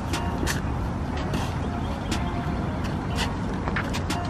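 A basketball bounces on an outdoor court.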